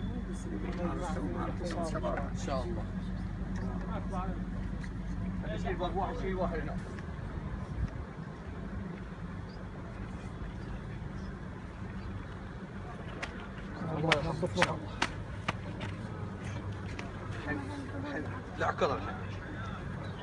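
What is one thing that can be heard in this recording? Men talk quietly nearby in a group outdoors.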